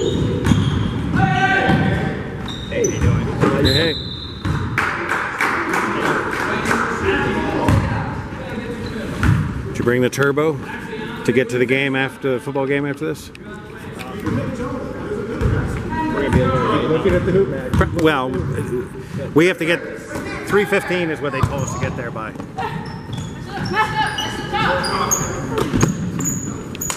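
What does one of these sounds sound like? Boys shout and call out in a large echoing hall.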